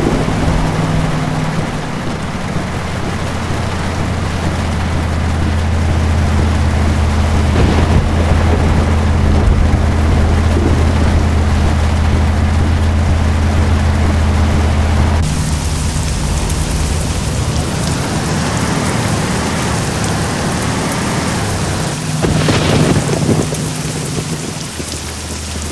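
A truck engine rumbles steadily at low pitch.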